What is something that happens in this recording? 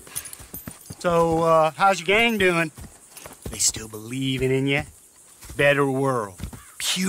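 A second man answers with a drawl.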